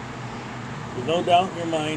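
A middle-aged man speaks briefly, close by.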